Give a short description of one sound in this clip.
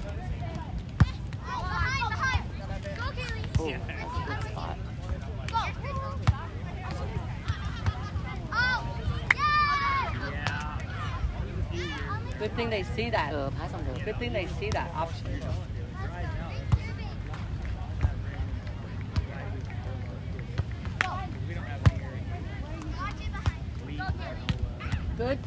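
Hands strike a volleyball with sharp thumps.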